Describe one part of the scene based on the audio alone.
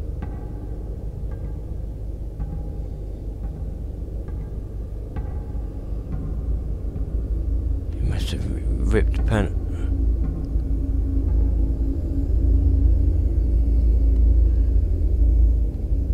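A deep, steady hum of machinery drones throughout.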